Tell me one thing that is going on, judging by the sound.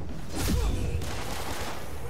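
Electricity crackles and zaps in loud bursts.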